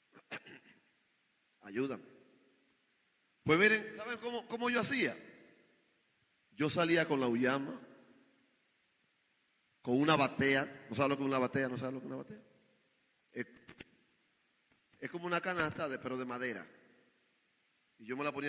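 A man preaches with fervour into a microphone, in loud bursts with pauses.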